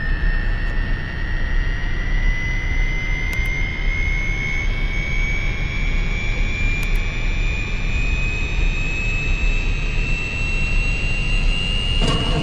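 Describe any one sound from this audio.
An aircraft engine rumbles steadily with a whine that slowly rises in pitch.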